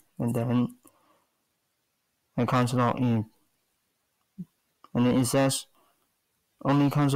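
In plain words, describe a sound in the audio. A man speaks in short bursts, close to the microphone.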